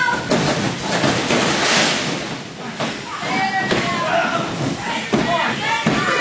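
Wrestlers' bodies thump on a wrestling ring mat.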